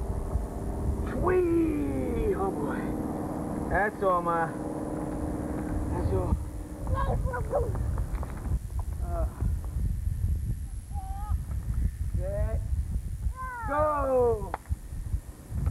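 A toddler babbles and calls out.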